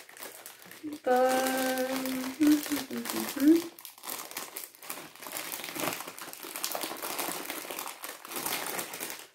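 Plastic wrapping crinkles as hands open a packet.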